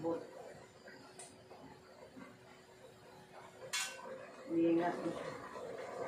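Pots clatter on a stove.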